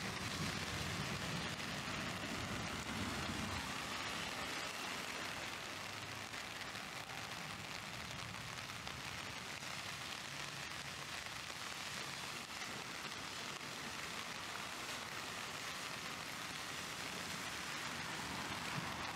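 Traffic hums on a nearby road.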